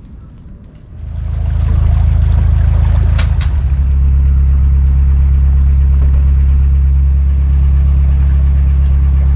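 A boat engine chugs steadily at a low pitch.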